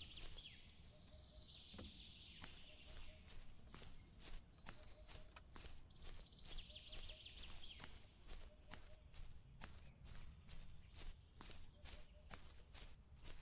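Footsteps crunch steadily on a dirt path.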